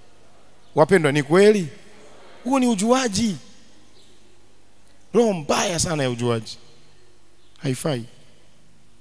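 A man speaks with animation into a microphone, heard through loudspeakers in a large room.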